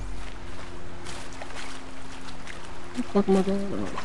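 Water splashes softly as someone wades through it.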